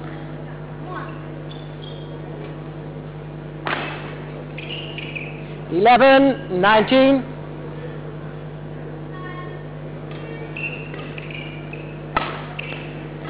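A racket strikes a shuttlecock with a crisp pop in an echoing hall.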